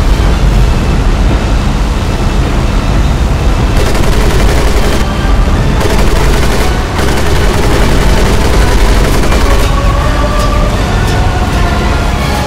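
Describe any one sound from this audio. Flak shells burst with dull booms.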